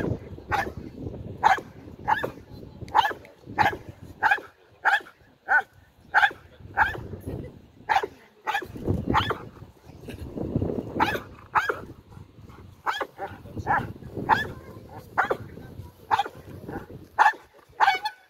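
A large dog barks sharply, over and over.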